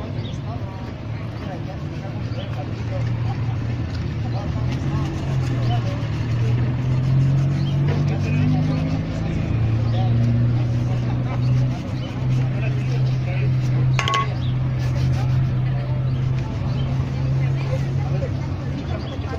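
A cloth rubs and buffs a leather shoe.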